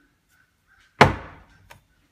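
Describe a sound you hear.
A heavy iron tool knocks down onto a hard surface.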